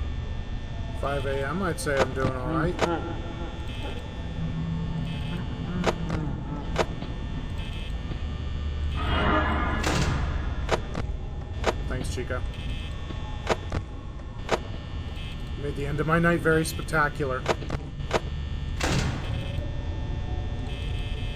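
An electric desk fan whirs.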